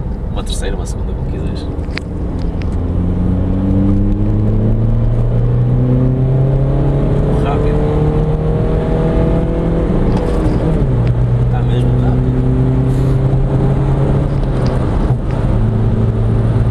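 A car engine hums steadily at low pitch.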